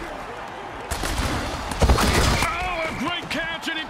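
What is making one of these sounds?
Players crash together in a heavy tackle.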